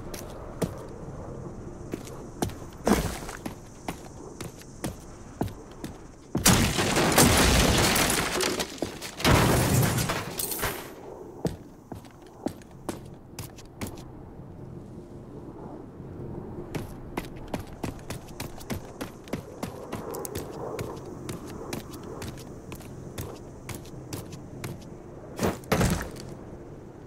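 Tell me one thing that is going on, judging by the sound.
Footsteps crunch steadily on dirt and metal.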